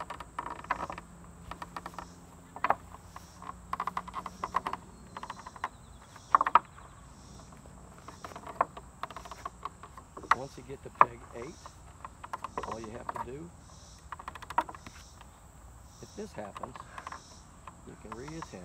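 Hands slap and grip a wooden beam with dull knocks.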